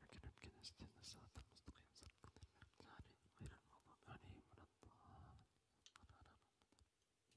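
A young man speaks softly into a microphone.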